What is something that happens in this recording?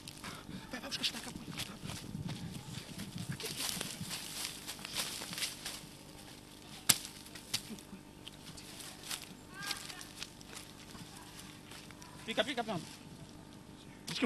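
A machete chops into wood with sharp knocks.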